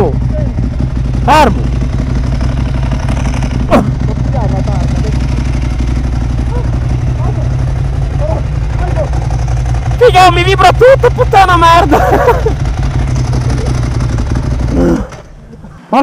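A motorcycle engine idles with a low rumble close by.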